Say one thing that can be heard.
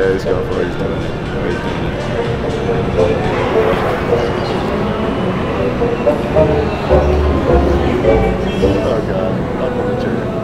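Gaming machines chime and jingle.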